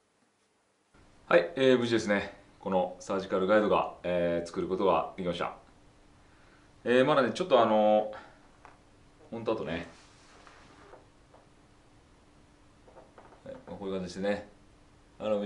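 A middle-aged man speaks calmly and close.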